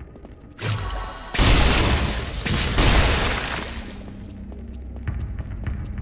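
Blows and hits thud in a game fight.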